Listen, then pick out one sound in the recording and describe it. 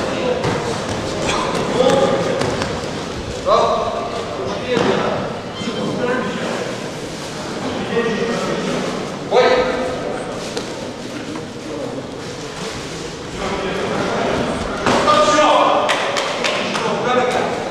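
Fighters' gloves and feet thud as punches and kicks land.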